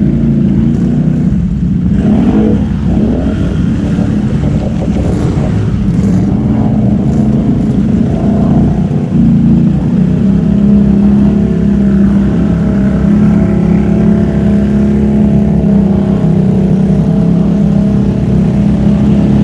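Muddy water splashes under quad bike tyres.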